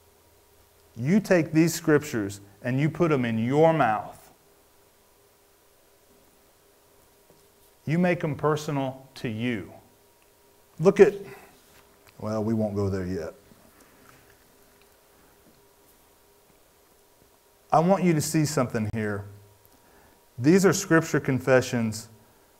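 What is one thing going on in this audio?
A man speaks calmly into a microphone, with pauses.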